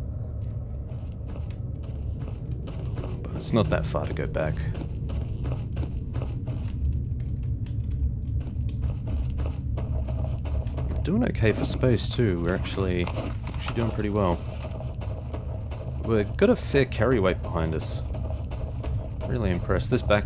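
Footsteps clang on metal stairs and crunch on gravel.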